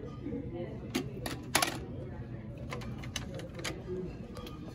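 A plastic shopping basket rattles and clacks as its handles are moved.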